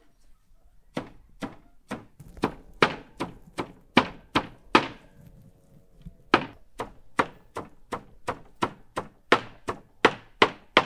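A knife chops leafy herbs on a wooden board in steady strokes.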